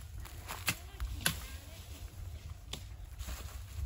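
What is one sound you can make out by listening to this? Plant stalks snap and crack.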